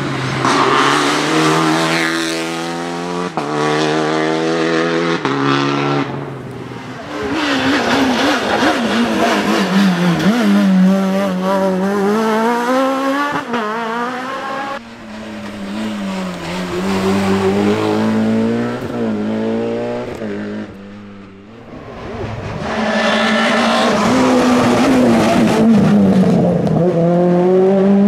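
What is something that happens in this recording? Rally car engines roar and rev hard as cars race past.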